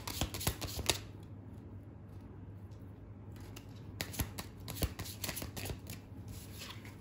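Playing cards are shuffled and laid down on a table with soft clicks and slaps.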